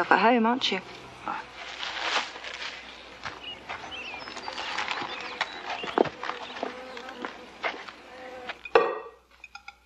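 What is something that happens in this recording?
Footsteps rustle along a leafy path.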